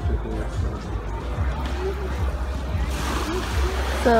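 Small waves lap gently against a sandy shore.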